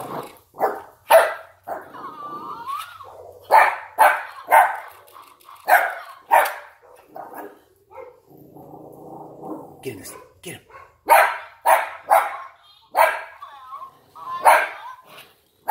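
A dog barks loudly and repeatedly nearby.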